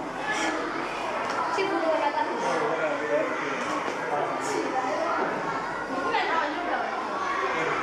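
Young girls chatter close by.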